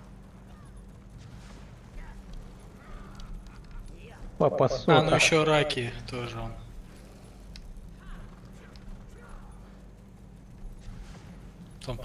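Horses gallop with hooves thudding on the ground.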